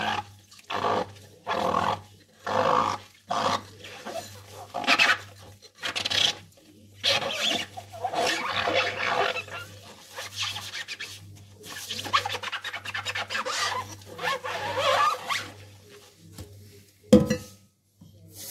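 Gloved hands scrub a glass bowl with a soapy sponge, squeaking and swishing in bursts.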